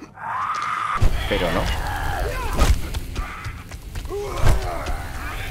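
A club thuds heavily into a body.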